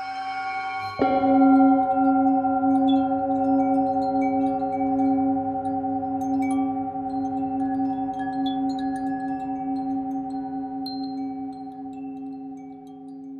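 A singing bowl is struck and rings out, slowly fading.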